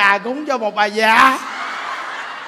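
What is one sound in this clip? A large crowd laughs loudly.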